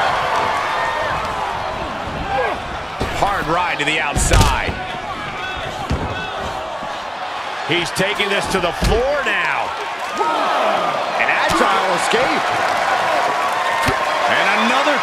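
A large crowd cheers and shouts steadily in a big echoing hall.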